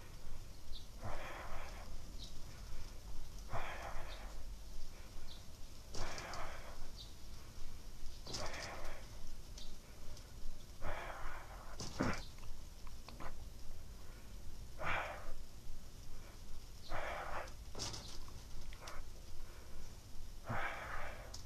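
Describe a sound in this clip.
A person breathes slowly and heavily, very close by.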